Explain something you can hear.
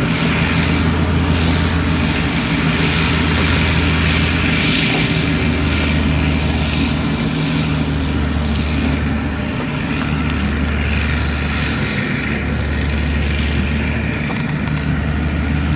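A forage harvester chops crop with a whirring roar.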